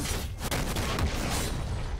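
Fire bursts with a whoosh.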